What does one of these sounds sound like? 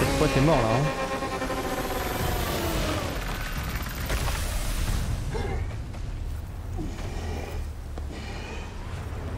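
Energy blasts whoosh and crackle loudly.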